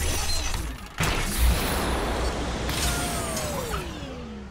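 Jet thrusters roar.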